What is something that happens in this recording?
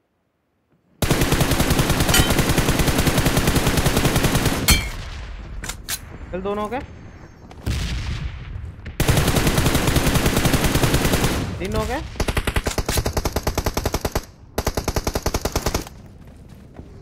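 Rapid gunfire rattles loudly in fast bursts.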